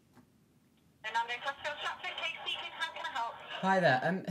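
A voice answers through a phone's speaker.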